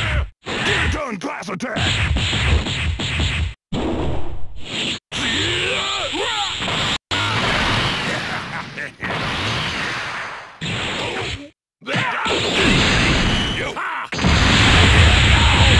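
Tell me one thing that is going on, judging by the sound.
Punches land with rapid heavy thuds.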